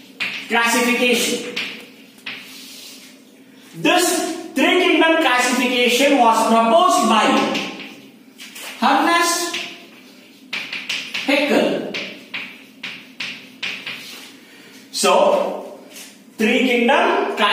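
A middle-aged man speaks loudly with animation, as if lecturing, in a room with some echo.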